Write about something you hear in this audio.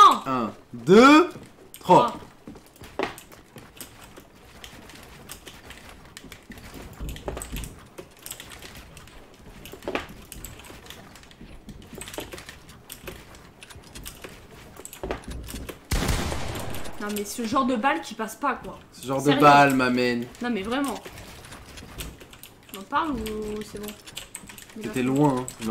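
Game building pieces click and thud in quick succession.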